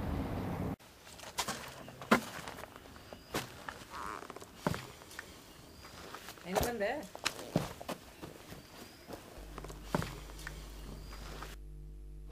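Footsteps crunch on dry ground and grass.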